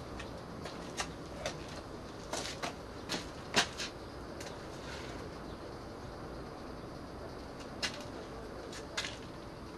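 Light clicks and taps sound on a panel.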